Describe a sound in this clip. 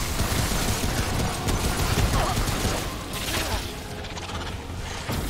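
Heavy blows and rumbling sounds of a fight boom loudly.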